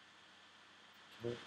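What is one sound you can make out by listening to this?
A young man speaks briefly and close to a microphone.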